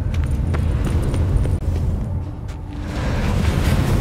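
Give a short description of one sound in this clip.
A magical portal hums and whooshes.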